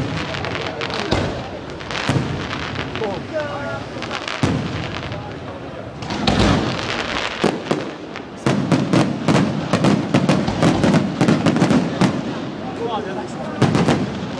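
Fireworks bang and crackle loudly outdoors.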